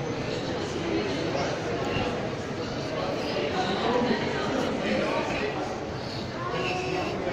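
Many voices murmur in a large echoing hall.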